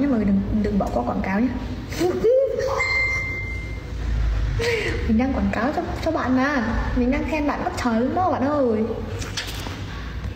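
A young woman talks playfully close to the microphone.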